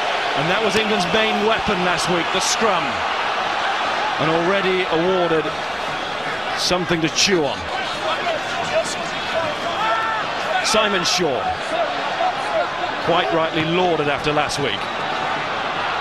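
A large crowd chants in unison, in repeated bursts.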